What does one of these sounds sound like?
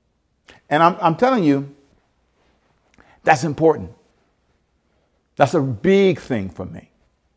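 A man speaks with animation close to a microphone, in short bursts with pauses.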